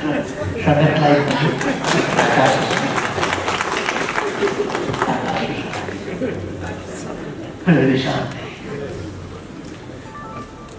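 An elderly man gives a speech through a microphone and loudspeakers in a large hall.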